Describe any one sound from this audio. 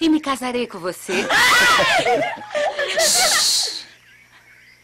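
A group of men and women laugh and cheer.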